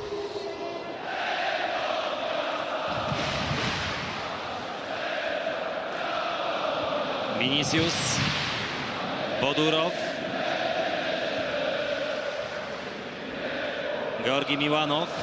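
A large crowd murmurs and chants steadily in an open stadium.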